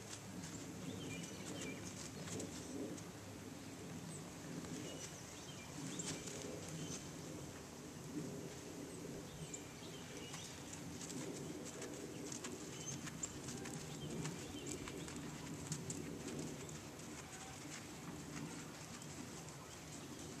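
A horse's hooves thud softly on sand at a distance.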